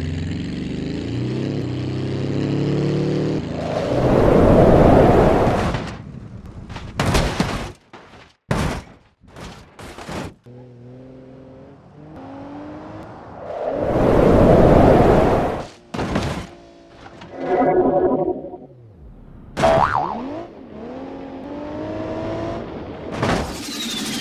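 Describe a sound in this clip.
A car engine revs and hums.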